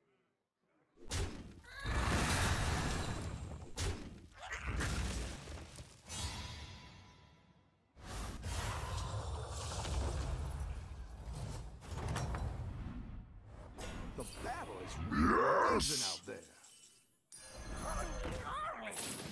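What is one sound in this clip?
Video game effects crash and chime.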